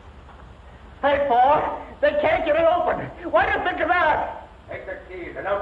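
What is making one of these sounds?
A man talks cheerfully and loudly close by, heard through an old, muffled recording.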